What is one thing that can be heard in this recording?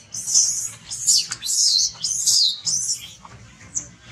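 A baby monkey screeches loudly.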